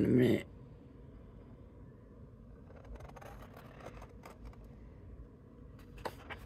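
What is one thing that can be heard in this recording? Scissors snip through stiff paper.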